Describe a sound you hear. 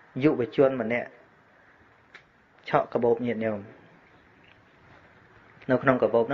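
A man speaks calmly and steadily, in short phrases with pauses.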